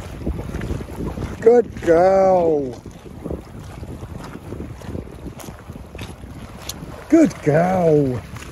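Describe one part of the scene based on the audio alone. A dog splashes as it paddles through the water.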